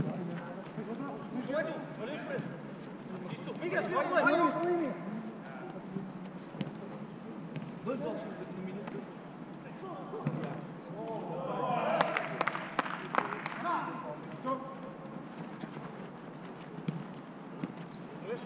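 Young men shout to each other across an open outdoor pitch.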